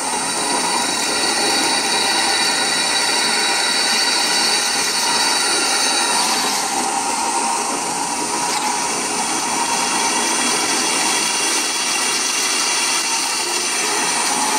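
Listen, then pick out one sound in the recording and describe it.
A drill press whirs steadily as the bit cuts into wood.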